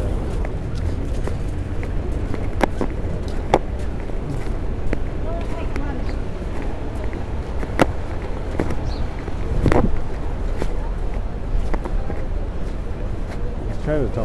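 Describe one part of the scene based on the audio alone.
Footsteps thump on a pavement as someone walks.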